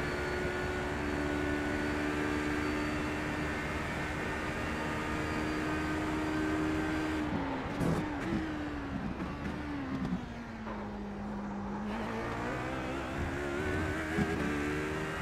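A race car engine drones at high revs, drops sharply as it slows and shifts down, then climbs again.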